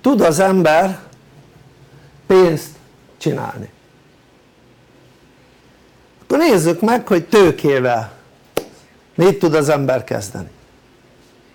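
An elderly man speaks calmly and clearly, close by, in short bursts with pauses.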